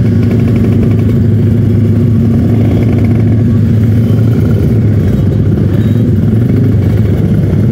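A motorcycle engine idles and revs loudly up close.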